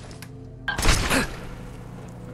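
An electric burst crackles loudly and briefly.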